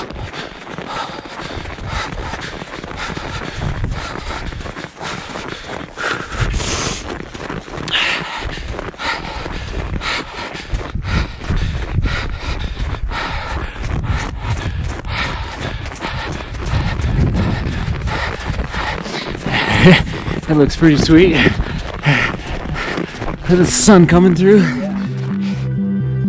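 A man talks breathlessly up close.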